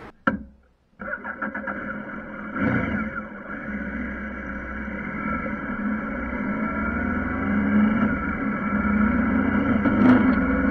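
A motorcycle engine hums steadily and rises in pitch as it speeds up.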